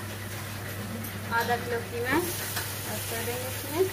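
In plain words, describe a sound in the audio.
Minced meat drops into a pot of hot oil.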